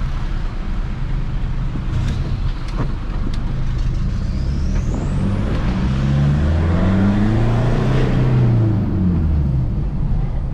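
A car engine hums from inside the cabin and revs up as the car speeds up.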